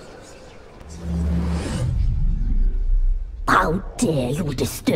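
An elderly woman speaks harshly and close by.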